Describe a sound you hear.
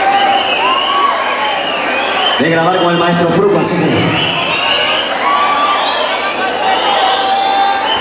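Loud music plays through loudspeakers.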